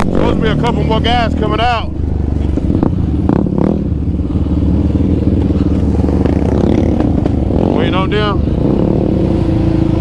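A quad bike engine rumbles close by.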